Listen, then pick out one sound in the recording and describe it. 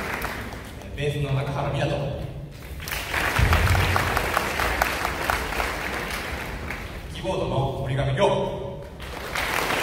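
A young man sings through a microphone over the band.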